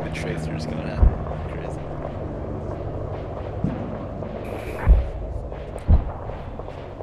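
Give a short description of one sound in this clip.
Rifle shots crack nearby.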